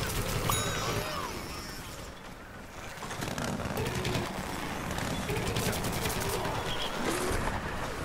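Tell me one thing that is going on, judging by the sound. An explosion bursts with a crackle of debris.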